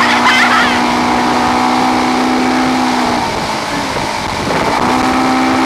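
A motorboat engine drones steadily close by.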